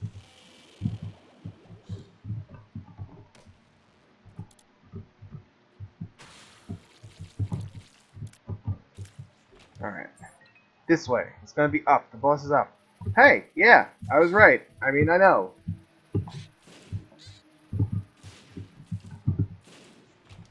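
Short wet splats and thuds from a video game sound in quick succession.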